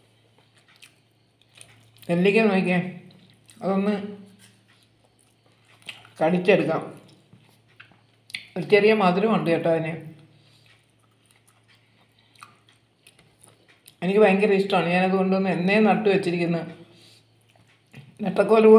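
Fingers squish and mix soft rice on a plate.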